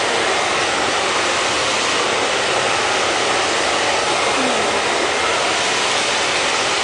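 A hair dryer blows with a steady, loud whoosh close by.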